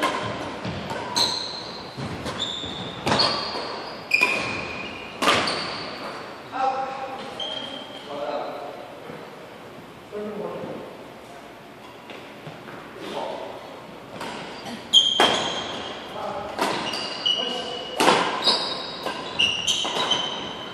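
Rackets strike a shuttlecock with sharp pops that echo in a large hall.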